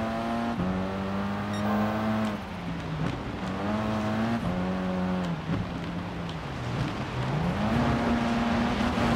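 Gravel crunches and rattles under tyres.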